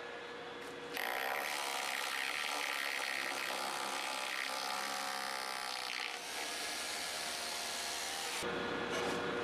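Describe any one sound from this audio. A hammer drill whines and rattles as it bores into concrete.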